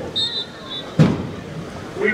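Football players collide with a thud during a tackle.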